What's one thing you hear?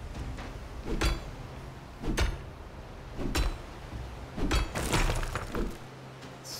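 Rocks are struck with heavy knocks.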